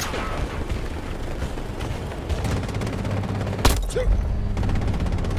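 A heavy vehicle engine rumbles nearby.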